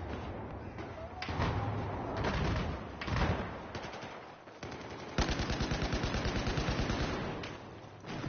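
Rapid gunshots crack sharply, close by.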